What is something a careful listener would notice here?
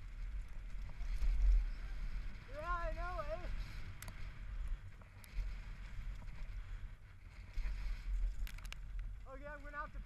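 Bike tyres crunch and roll over a gravel trail.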